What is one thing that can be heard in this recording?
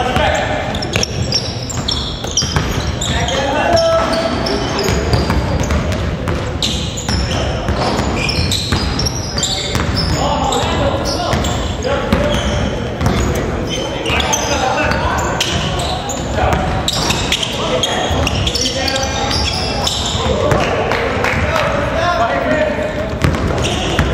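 Young players shout to each other across an echoing hall.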